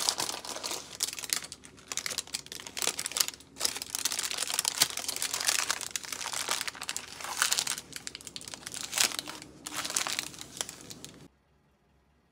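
Baking paper rustles and crinkles under a hand.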